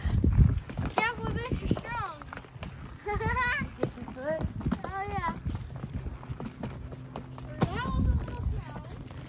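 A young girl calls out in a high, lively voice nearby.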